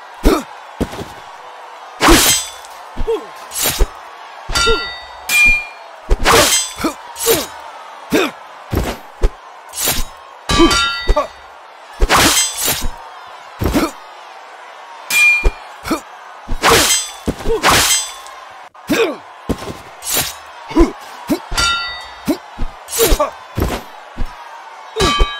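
Metal blades clash and strike again and again, with sharp ringing hits.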